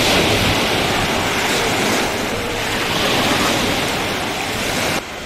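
Small waves lap gently.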